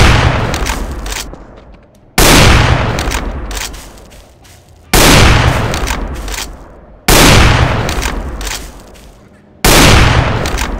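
A rifle fires loud booming shots that echo and fade.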